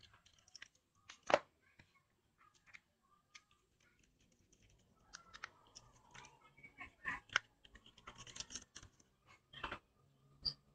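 Plastic parts of a phone tap and click as they are handled.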